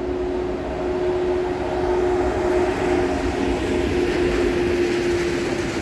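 Train wheels clatter and squeal on the rails as the train passes close by.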